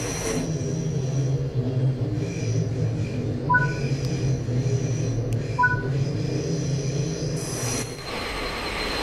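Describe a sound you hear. A train's electric motor hums steadily, then falls quiet.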